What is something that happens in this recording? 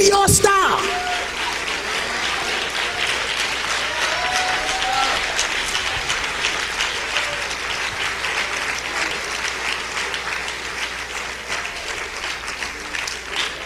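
A congregation claps and cheers.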